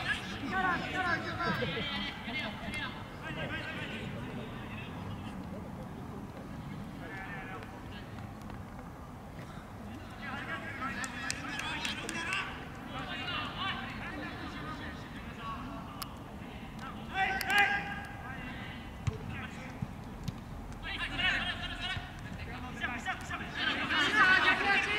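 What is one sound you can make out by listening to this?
Young men shout to each other across an outdoor field.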